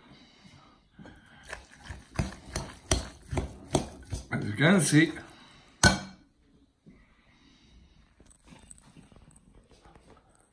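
A fork mashes and scrapes through a moist mixture in a glass bowl.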